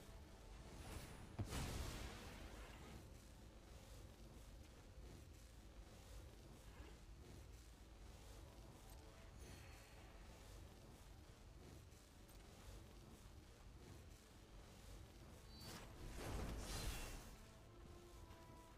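Game sound effects whoosh and chime as cards are played.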